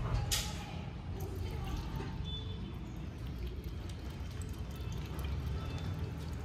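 Milk pours into a metal bowl.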